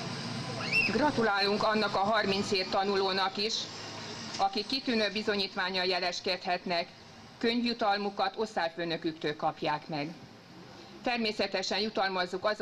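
A woman speaks calmly into a microphone, heard through loudspeakers outdoors.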